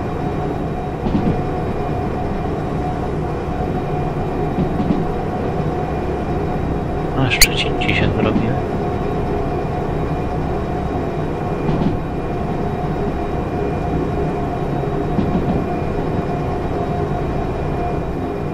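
A train rumbles steadily along a track in a tunnel.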